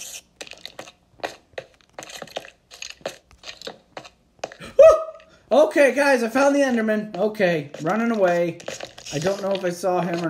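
Footsteps tread on stone.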